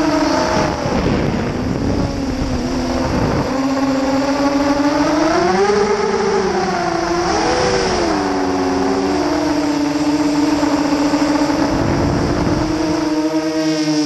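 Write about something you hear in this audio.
Wind buffets the drone outdoors.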